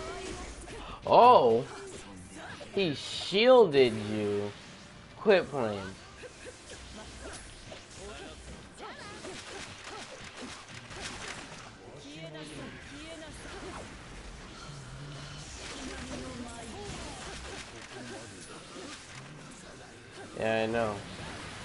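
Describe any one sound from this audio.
Blows and hits land in a fast fight.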